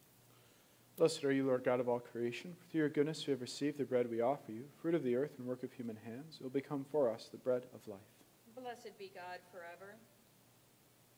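A man speaks calmly into a microphone in a quiet, slightly echoing room.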